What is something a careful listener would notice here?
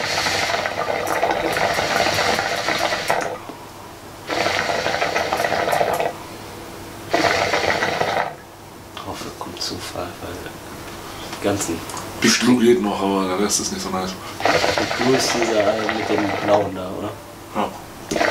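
Two young men talk and laugh with animation, close to a microphone.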